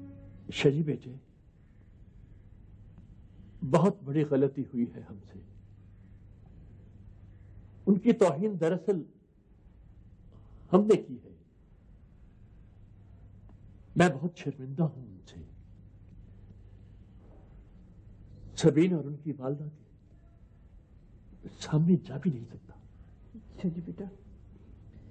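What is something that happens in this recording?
A middle-aged man speaks calmly, with long pauses.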